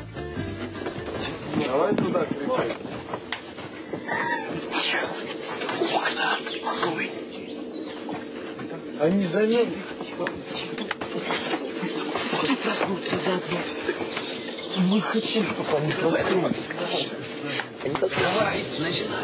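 Young men shout and argue heatedly close by.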